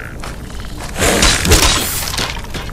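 A weapon strikes with a loud crash.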